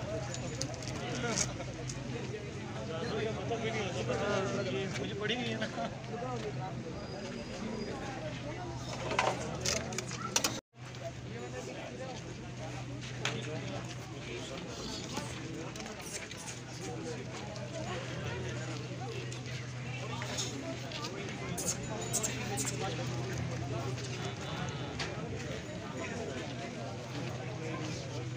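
A crowd of men talks and calls out nearby.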